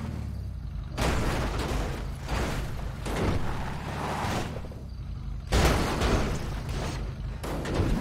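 A car crashes and tumbles, metal banging on rock.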